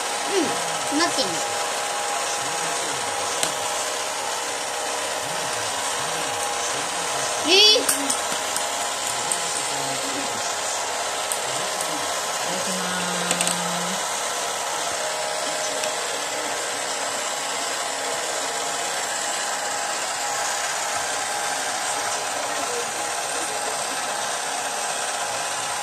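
A toy conveyor motor hums steadily.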